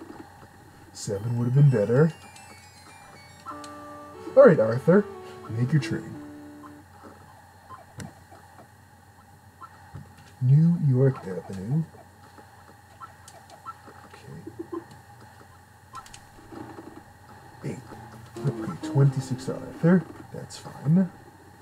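Electronic game beeps and short jingles play.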